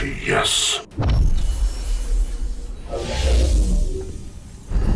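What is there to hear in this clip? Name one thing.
A fiery burst roars.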